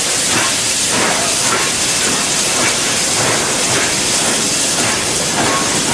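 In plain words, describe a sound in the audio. Steam hisses loudly from a steam locomotive's cylinders.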